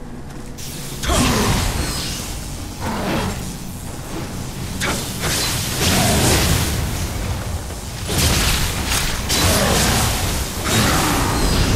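Sword blows clash and strike hard, again and again.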